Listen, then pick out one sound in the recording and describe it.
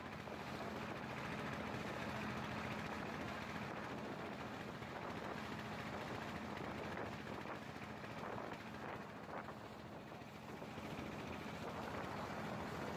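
Water splashes against a moving boat's hull.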